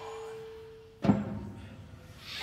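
A piano plays notes.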